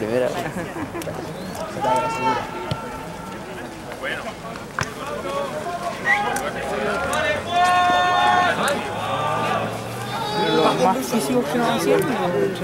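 Young women shout calls to each other outdoors across an open field.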